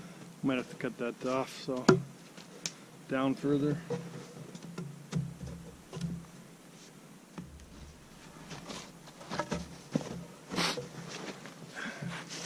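Wooden poles knock together as they are set in place.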